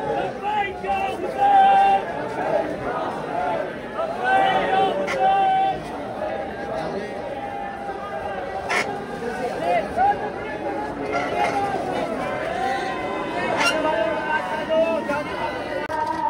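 Loud music plays through big loudspeakers nearby.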